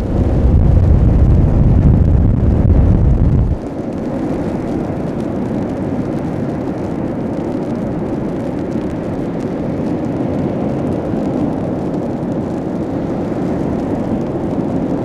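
Waves crash and foam washes up onto the shore.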